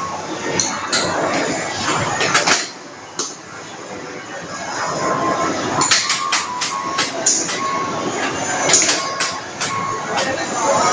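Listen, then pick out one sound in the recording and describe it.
A plastic puck clacks sharply against paddles and the table's rails.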